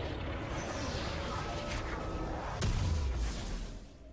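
A game character teleports with a whooshing chime.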